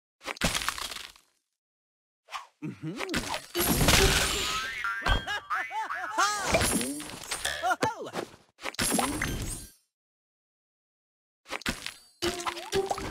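Bright chiming game sound effects play in short bursts as candies burst.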